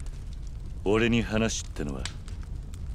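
A second man answers quietly in a low, gruff voice.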